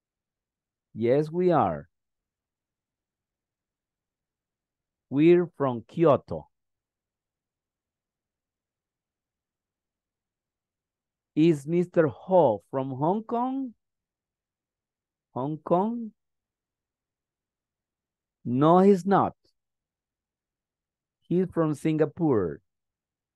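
A man speaks in short phrases over an online call, with pauses between them.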